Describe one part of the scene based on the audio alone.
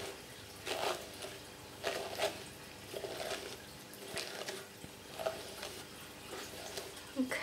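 A brush swishes through long hair in repeated strokes.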